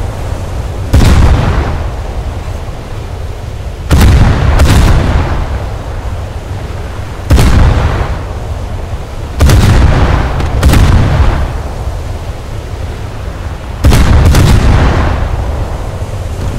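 Heavy naval guns fire in loud booming blasts that rumble away.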